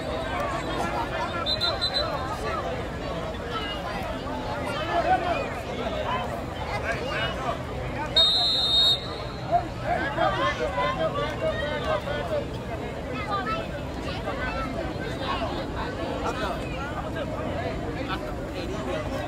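A crowd of young men and spectators chatter and shout outdoors.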